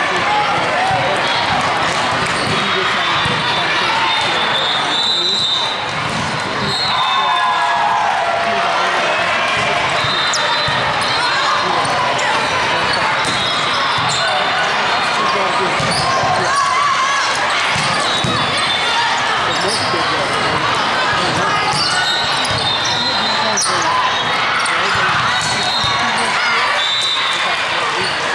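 Many voices of players and spectators chatter and call out in a large echoing hall.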